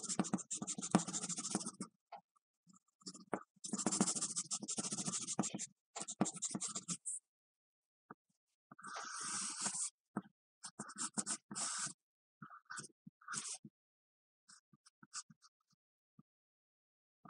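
A pencil scratches and scrapes on paper in short strokes.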